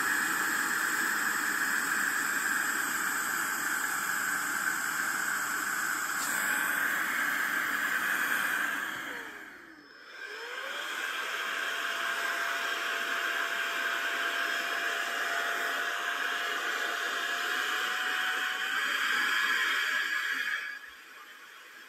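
A small electric air pump whirs loudly, briefly winds down and then starts up again.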